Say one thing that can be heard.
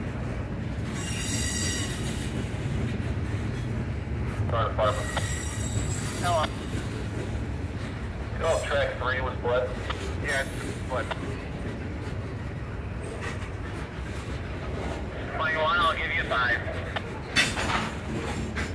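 Train wheels squeal in short high bursts.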